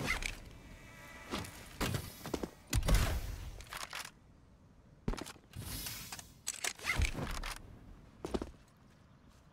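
Heavy footsteps thud on the ground.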